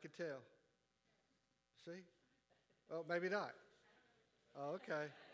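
A man speaks in short, pausing bursts.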